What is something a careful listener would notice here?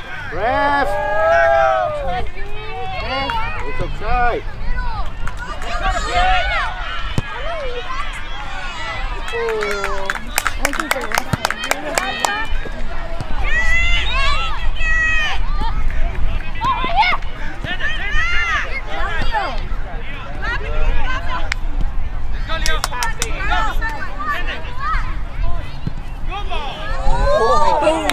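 A crowd of adults shouts and cheers outdoors.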